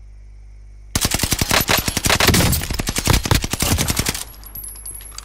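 Gunshots fire in a rapid, loud burst.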